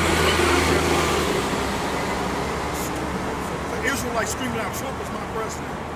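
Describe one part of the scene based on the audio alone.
A man speaks loudly outdoors.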